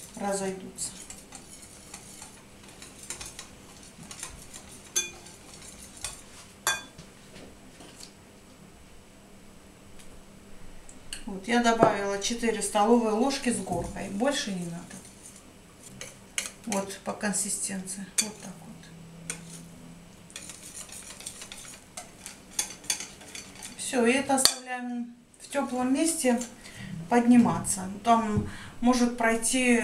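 A whisk beats batter in a bowl with quick clinking taps.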